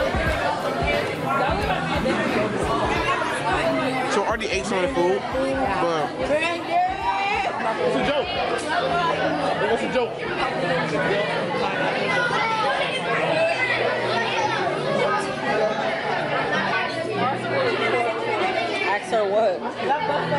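A crowd murmurs in a busy echoing hall.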